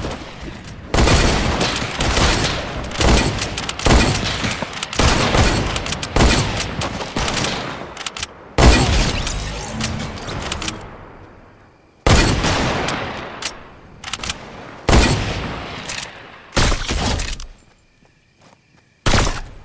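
Gunfire crackles in rapid bursts, each followed by a ringing echo.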